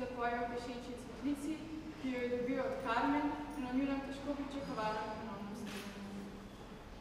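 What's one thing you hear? A young woman sings a slow, sustained melody close by in an echoing room.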